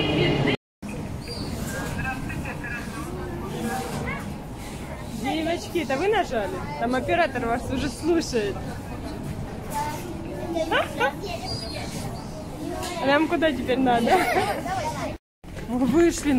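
Children talk and laugh excitedly close by.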